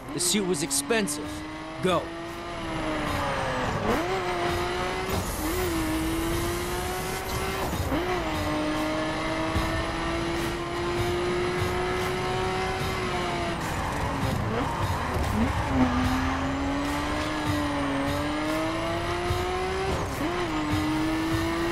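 Tyres hum on the road at speed.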